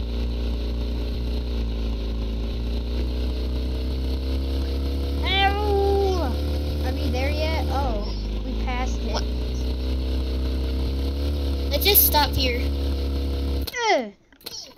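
A motorbike engine hums steadily, then cuts out abruptly.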